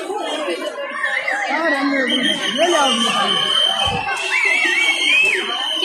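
Men and women in the crowd cheer and whistle.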